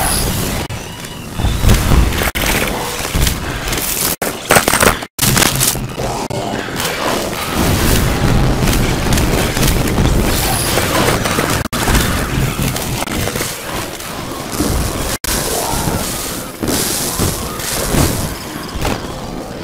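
Cartoon pea shots pop and splat in quick bursts.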